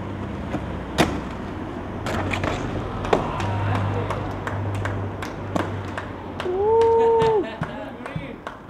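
A skateboard clacks and slaps down on landing.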